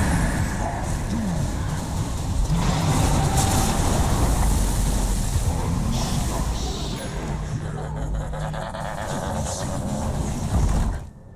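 Spells and attacks crackle, whoosh and clash in a busy game battle.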